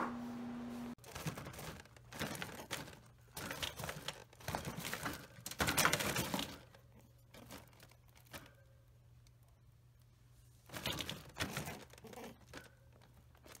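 A rabbit rustles and crunches lettuce in a wire cage.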